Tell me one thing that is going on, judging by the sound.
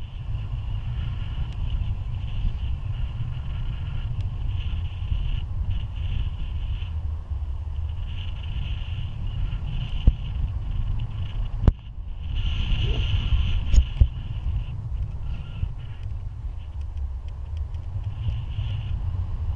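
Strong wind roars and buffets against a microphone outdoors.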